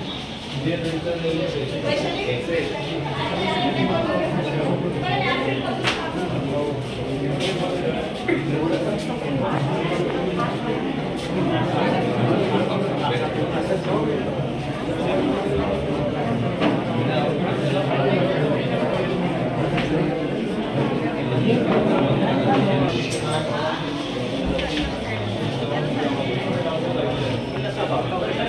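A crowd of men chatter loudly close by, echoing in a hallway.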